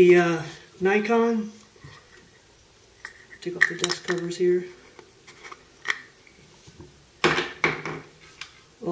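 Rifle parts click and rattle as they are handled.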